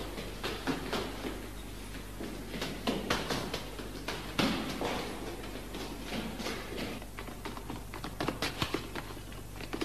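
Footsteps clatter quickly up a stairwell.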